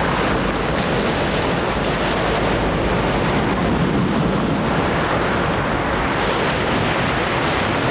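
Waves crash and roar onto a pebble shore.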